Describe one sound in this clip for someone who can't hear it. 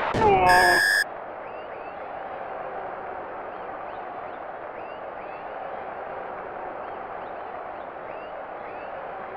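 A large crowd cheers and murmurs steadily in a stadium.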